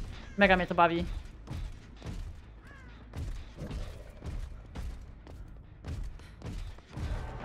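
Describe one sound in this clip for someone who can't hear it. Heavy footsteps thud steadily.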